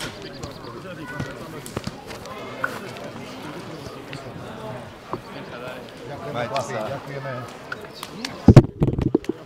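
Men talk and call out at a distance.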